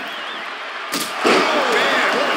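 A body slams hard onto the floor.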